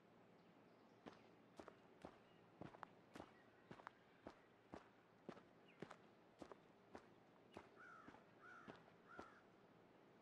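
Footsteps crunch softly on a forest floor.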